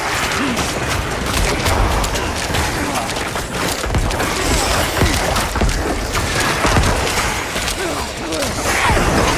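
Magic spells crackle and burst in fast, busy game combat.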